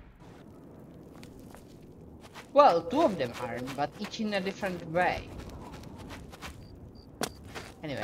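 Footsteps tread on stone paving.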